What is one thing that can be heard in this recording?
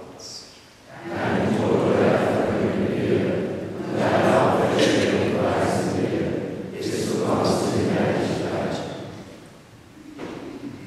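A group of people recite a prayer together in unison, echoing in a large hall.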